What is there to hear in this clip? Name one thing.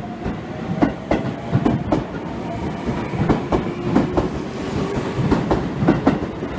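A train's motor hums steadily as it moves.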